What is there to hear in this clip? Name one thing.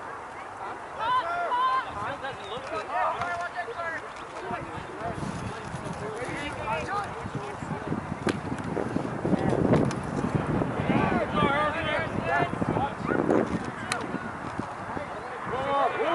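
Young men shout across an open field outdoors.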